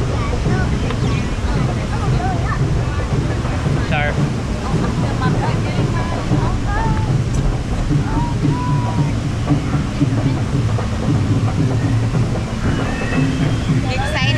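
Wind rumbles loudly against a nearby microphone outdoors.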